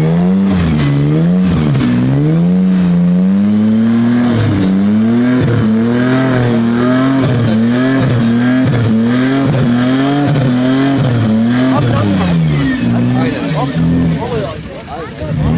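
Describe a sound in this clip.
An engine revs hard and labours, rising and falling in pitch.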